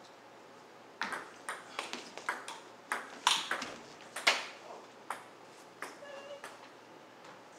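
A table tennis ball bounces on the table.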